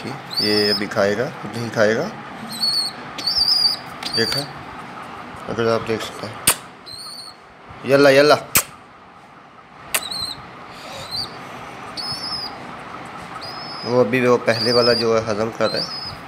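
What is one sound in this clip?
A young bird peeps repeatedly in high, thin cheeps.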